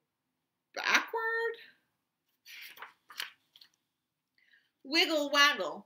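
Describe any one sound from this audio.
A book page turns.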